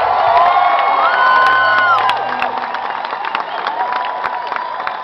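A crowd whistles and cheers loudly in a large hall.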